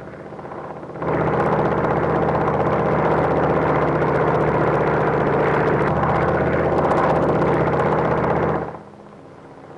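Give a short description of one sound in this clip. A biplane's propeller engine drones overhead.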